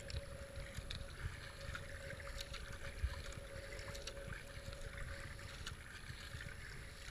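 Fast river water rushes and gurgles around a kayak.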